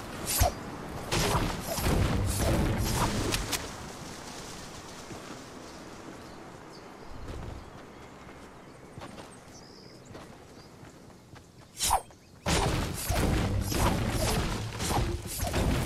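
A pickaxe strikes wood with repeated hard thuds.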